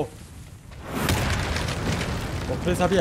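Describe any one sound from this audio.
An explosion bursts with a loud blast.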